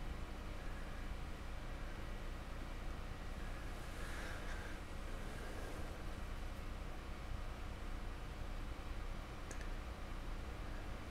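A paintbrush dabs softly against a hard surface.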